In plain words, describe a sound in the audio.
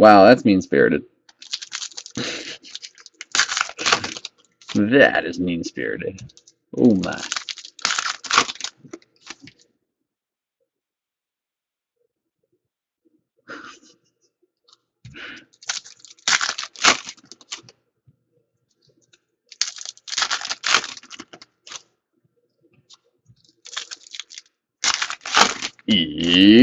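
Foil card packs crinkle and tear as hands rip them open.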